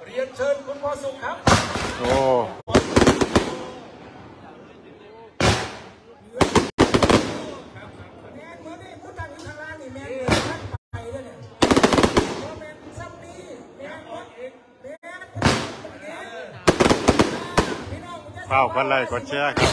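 Firework sparks crackle and fizz in the sky.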